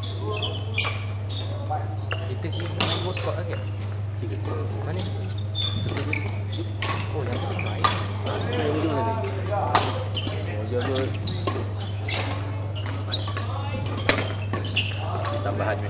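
Men talk and call out across the hall.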